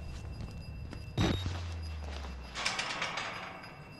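A metal cage door clanks and rattles as it is pushed.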